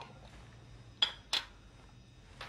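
A glass jar clinks as hands handle it.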